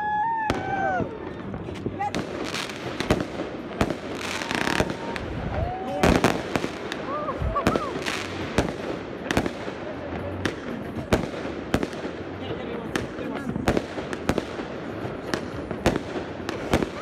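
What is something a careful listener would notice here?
Fireworks bang in the distance, one after another.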